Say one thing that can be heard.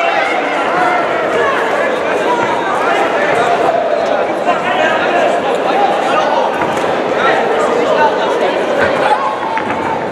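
Kicks and punches thud against bodies.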